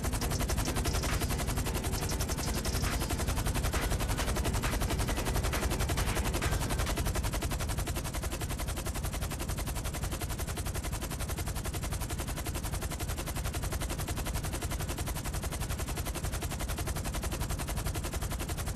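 Helicopter rotors thump steadily and loudly.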